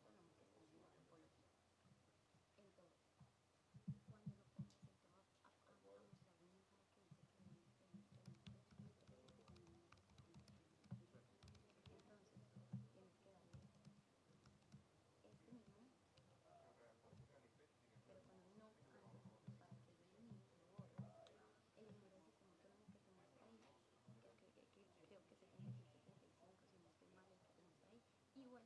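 Fingers tap on a laptop keyboard and touchpad.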